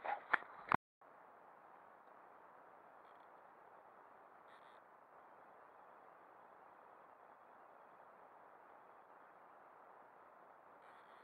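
Water laps gently against a kayak.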